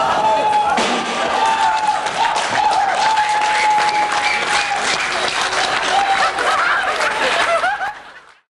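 A rock band plays loud, fast music live in a reverberant hall.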